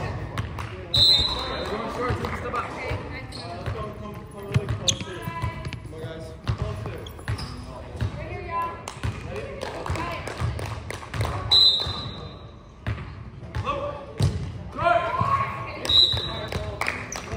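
Sneakers squeak on a wooden gym floor.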